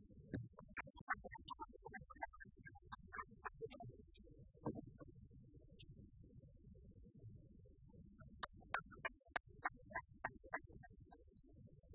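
People clap their hands in a room.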